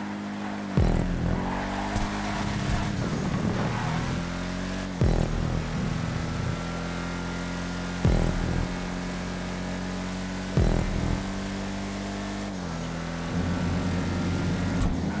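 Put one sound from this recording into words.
A car engine roars steadily, shifting gears with sharp jolts.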